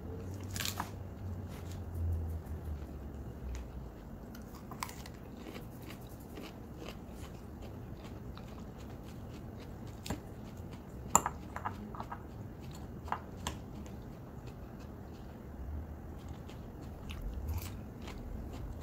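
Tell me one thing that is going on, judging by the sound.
A young woman chews crunchy salad close by.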